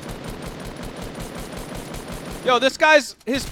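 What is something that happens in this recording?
A rifle fires in rapid repeated shots.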